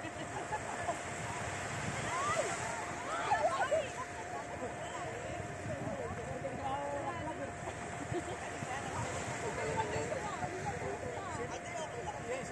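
Children shout and laugh at a distance while playing in the water.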